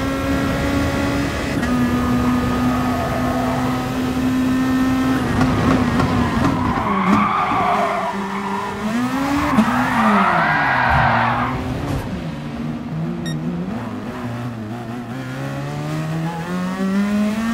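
A race car engine roars loudly, rising and falling in pitch as it shifts gears.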